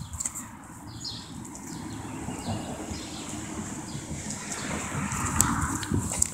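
A small animal scurries and rustles through dry leaves and grass.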